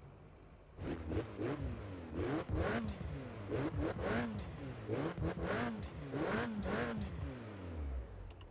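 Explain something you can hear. A car engine revs sharply several times while idling.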